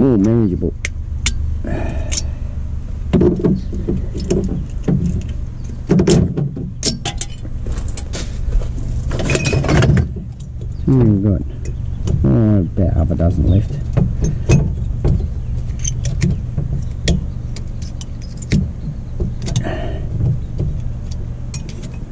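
Cans and bottles clink and rattle as a hand sorts through them.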